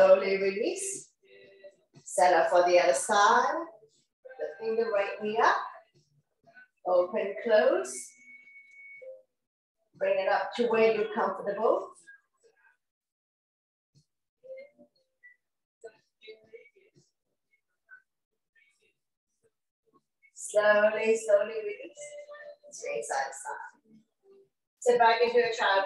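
A woman speaks calmly and clearly into a close microphone, giving instructions in short phrases with pauses.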